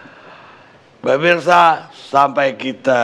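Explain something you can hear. A middle-aged man speaks firmly into a headset microphone.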